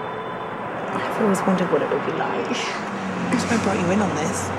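A young woman talks calmly up close.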